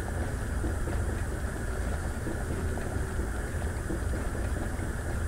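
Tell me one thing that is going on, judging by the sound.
Liquid bubbles softly in a glass flask.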